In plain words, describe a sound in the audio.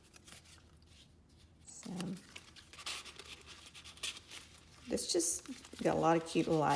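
Paper pages rustle and crinkle as they are handled.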